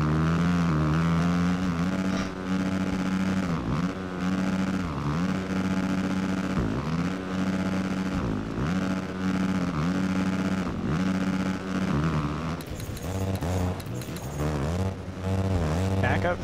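A motorcycle engine revs loudly, rising and dropping in pitch over and over.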